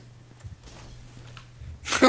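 A sword clangs against a metal shield.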